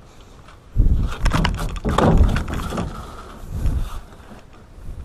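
A fish thumps and scrapes against a metal boat floor.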